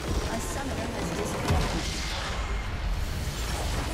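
A building explodes with a deep boom.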